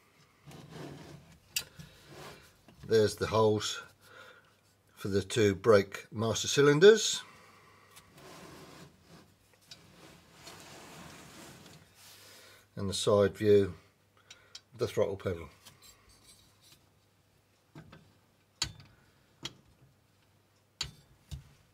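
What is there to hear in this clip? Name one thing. Metal pedal parts click and clack as they are handled.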